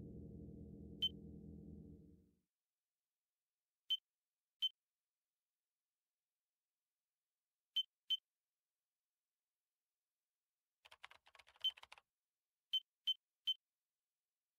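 A short electronic blip sounds each time a block snaps into place.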